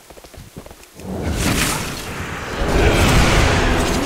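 Magical spell effects whoosh and shimmer.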